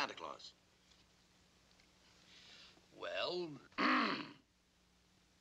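An elderly man speaks calmly and gravely in short bursts.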